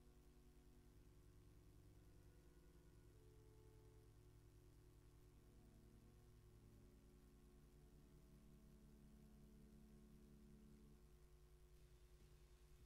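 An organ plays slow, sustained chords.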